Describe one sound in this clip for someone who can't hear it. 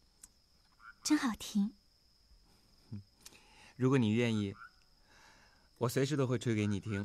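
A young man speaks softly and warmly nearby.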